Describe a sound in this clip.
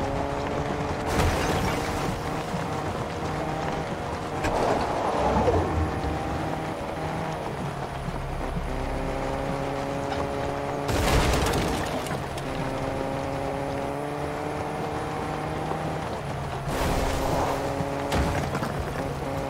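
A car engine hums steadily as a vehicle drives over grass and dirt.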